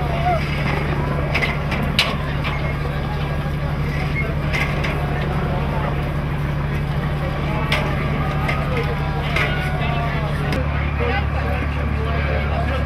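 Men talk to each other nearby, outdoors.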